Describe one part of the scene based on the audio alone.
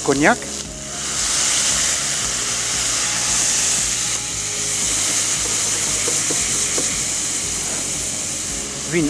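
Food sizzles and hisses steadily in a hot pot.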